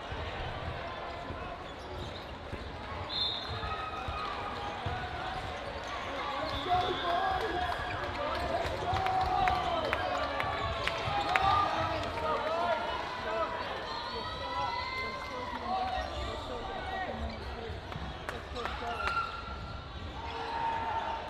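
Many people talk and shout in a large echoing hall.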